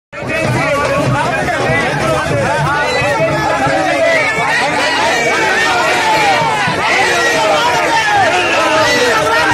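A crowd of men shout and clamour close by, outdoors.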